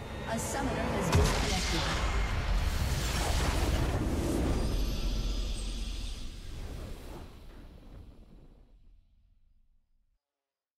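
A triumphant victory fanfare swells and slowly fades away.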